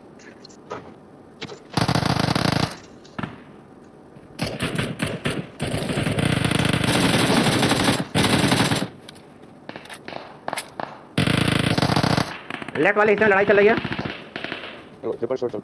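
Footsteps patter quickly over a tiled roof.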